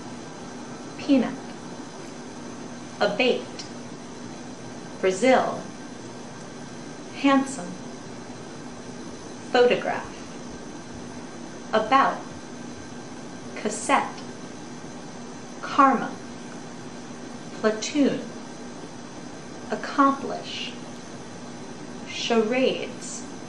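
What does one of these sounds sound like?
A young woman speaks close by, saying short phrases calmly with pauses in between.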